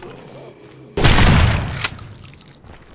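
A pistol fires a single loud shot that rings out.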